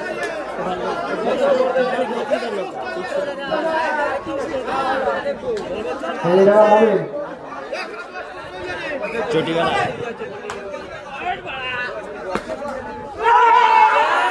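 Men nearby shout excitedly.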